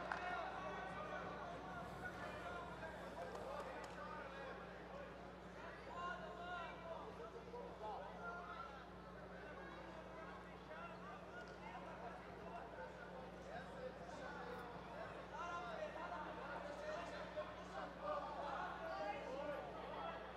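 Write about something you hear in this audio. A large crowd chatters and calls out in an echoing hall.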